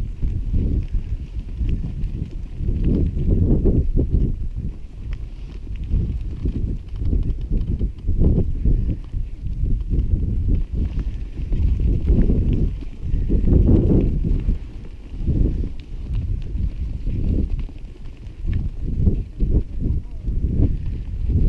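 Wind gusts and rumbles loudly across open ground.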